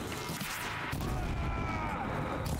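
A fiery blast bursts with crackling sparks.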